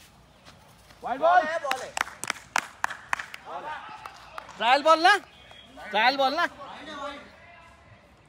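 Young men shout and cheer close by, outdoors.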